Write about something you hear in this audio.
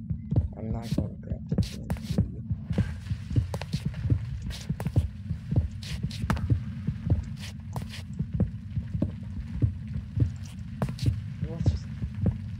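Stone blocks crumble and break.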